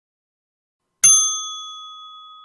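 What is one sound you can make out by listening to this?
A bell chimes once and rings out.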